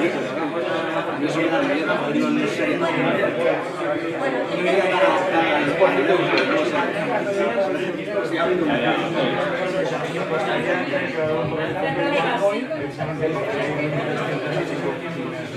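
Many men and women chatter at once in a busy, echoing room.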